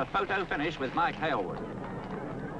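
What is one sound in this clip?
A man speaks loudly and cheerfully close by.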